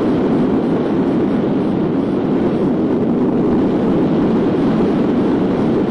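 Strong wind rushes and buffets past the microphone.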